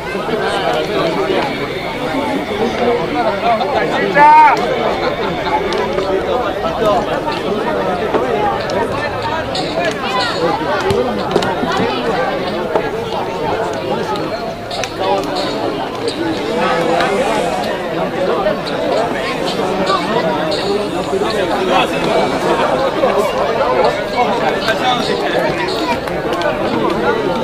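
A crowd of spectators chatters and calls out nearby, outdoors.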